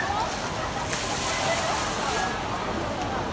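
A big splash of water crashes loudly.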